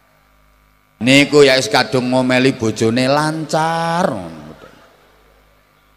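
A man speaks animatedly, almost singing, into a microphone over loudspeakers, with an echo trailing off.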